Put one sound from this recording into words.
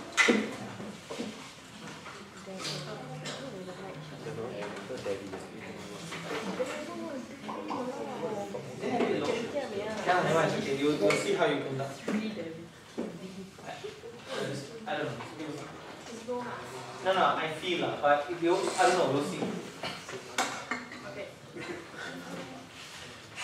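A young woman speaks calmly to a group.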